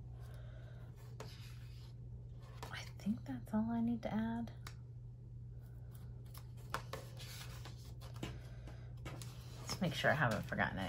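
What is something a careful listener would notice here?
Paper sheets rustle and flap as a sticker book's pages are turned.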